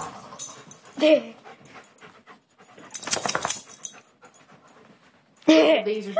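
A dog barks and growls playfully close by.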